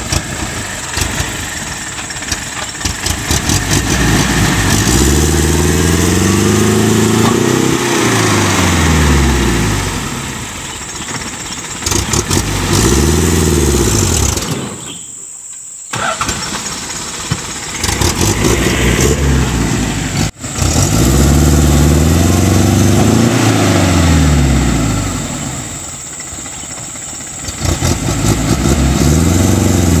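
A truck engine revs hard, rising and falling in loud surges.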